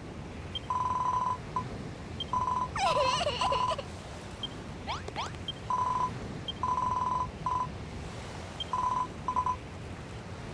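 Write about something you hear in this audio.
Short electronic beeps chirp rapidly in bursts.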